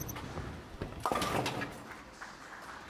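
Bowling pins crash loudly as a ball strikes them.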